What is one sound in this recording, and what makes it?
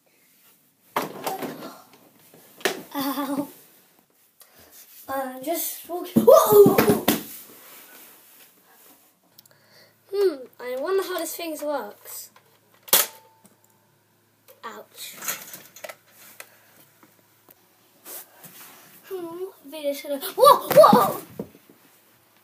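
A young girl talks with animation close by, in bursts.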